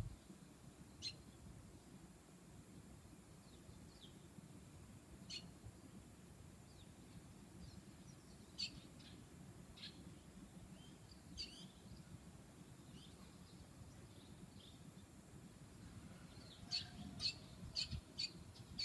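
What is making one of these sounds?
A small bird chirps in short, sharp calls nearby.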